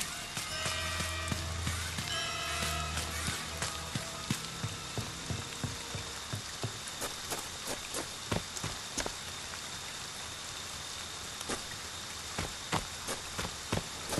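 Rain patters steadily outdoors.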